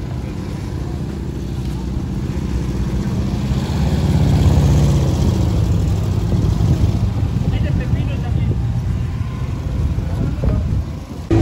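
Cars and vans drive past along a street.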